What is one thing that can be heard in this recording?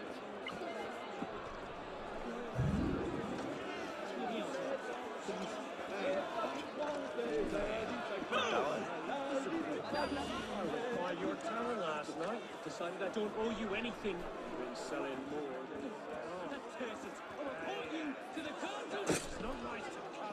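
A crowd of men and women chatters all around outdoors.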